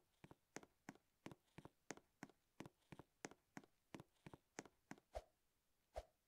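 Quick game footsteps tap in a steady run.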